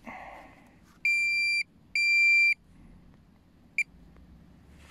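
A metal detector probe beeps in short, loud, steady tones.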